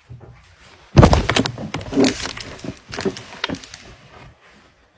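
A woman talks loudly close to a microphone.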